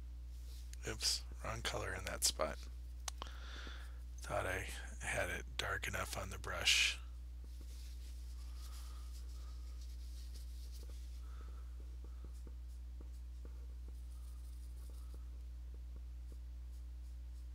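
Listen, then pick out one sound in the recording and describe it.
A brush softly dabs and scrapes through thick paint.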